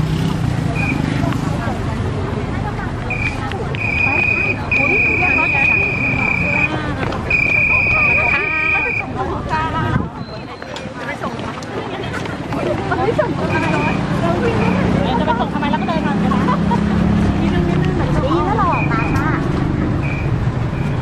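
A crowd of young women chatters and calls out close by, outdoors.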